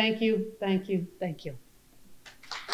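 A middle-aged woman speaks into a microphone.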